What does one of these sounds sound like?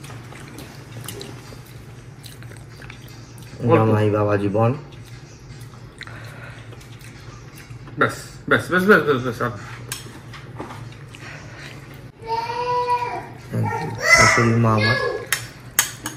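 Cutlery clinks on plates.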